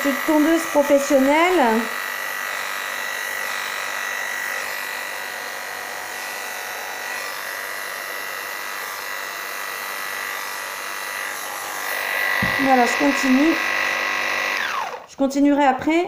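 Electric clippers buzz steadily close by.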